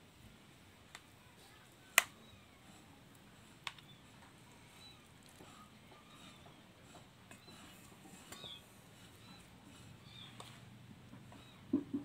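Shredded food drops into a pot with soft thuds.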